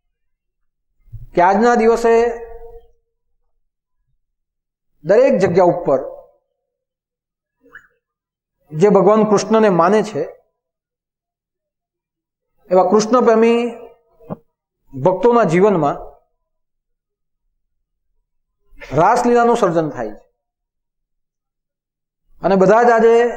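A man speaks calmly into a clip-on microphone, in short phrases with pauses.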